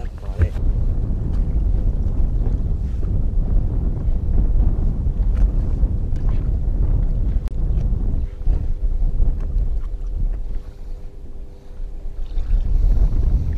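Small waves slap against a boat's hull.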